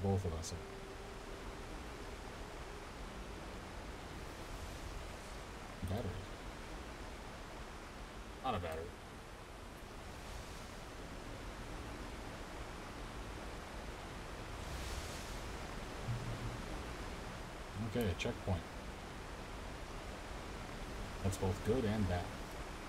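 A man talks into a close microphone in short bursts.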